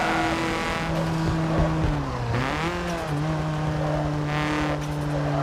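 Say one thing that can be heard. A car engine drones steadily, dipping in pitch as it shifts gear and then revving again.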